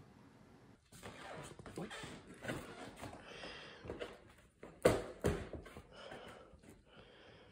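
A plastic cup scrapes and bumps across a floor.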